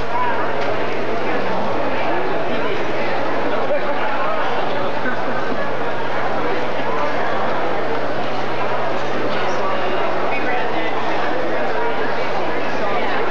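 A crowd chatters and murmurs nearby.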